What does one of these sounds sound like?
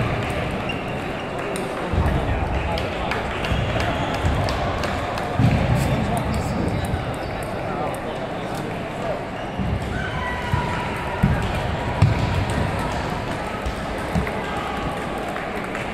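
A ping-pong ball clicks back and forth across a table.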